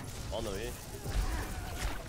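A blast of energy bursts with a loud whoosh.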